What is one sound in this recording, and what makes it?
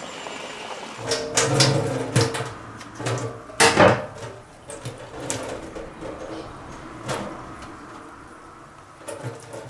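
Mushrooms rustle and knock in a wicker basket.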